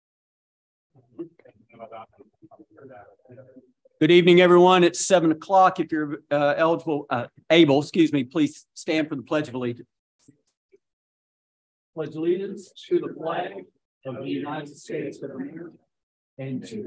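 A man speaks through a microphone, with pauses.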